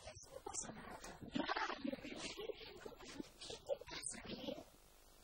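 A girl answers in a small voice.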